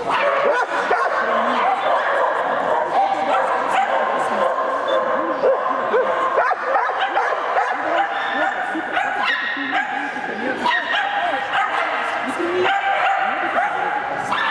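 A young man calls out commands to a running dog.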